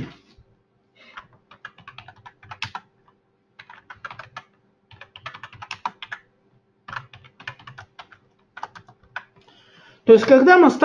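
Keys clatter on a keyboard in quick bursts of typing.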